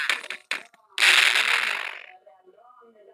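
A flashbang explodes with a loud bang.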